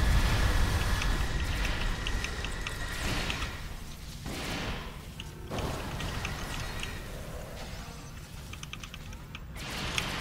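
Energy weapons fire in quick bursts.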